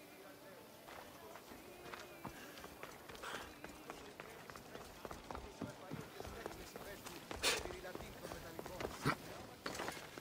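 Footsteps run on stone paving.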